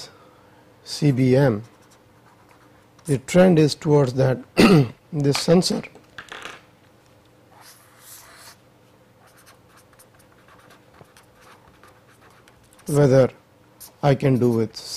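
A marker squeaks and scratches on paper.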